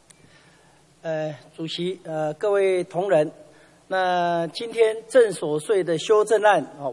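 A middle-aged man speaks formally into a microphone.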